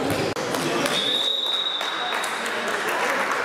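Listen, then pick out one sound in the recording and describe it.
A referee's whistle blows one long blast.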